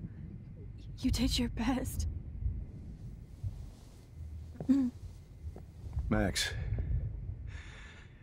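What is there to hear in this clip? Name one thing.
A young woman talks into a microphone with animation.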